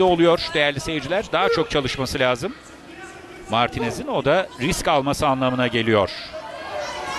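A crowd cheers and chants loudly.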